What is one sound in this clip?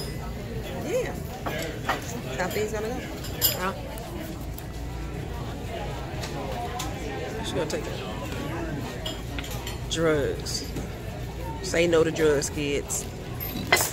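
Diners murmur in a busy room.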